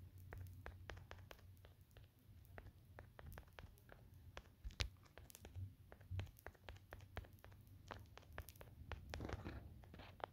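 Blocks are placed with quick, soft clicking knocks.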